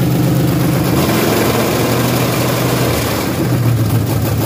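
A car engine revs up briefly and settles back.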